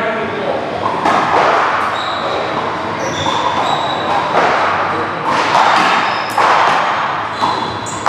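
A rubber ball smacks against a wall and paddles with sharp echoing thuds in a large hall.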